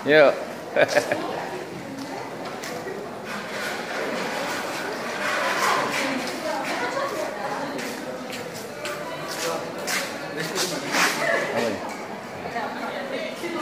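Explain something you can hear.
A crowd of diners chatter and murmur nearby.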